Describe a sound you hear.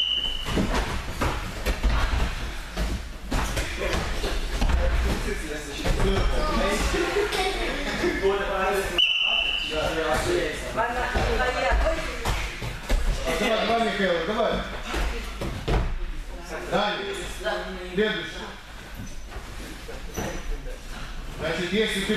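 Bodies and feet thump on gym mats during cartwheels and handstands.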